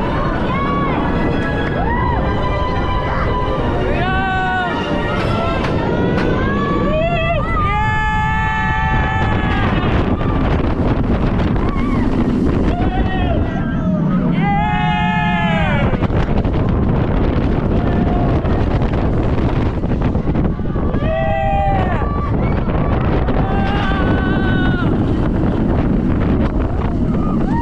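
Wind roars loudly past the microphone.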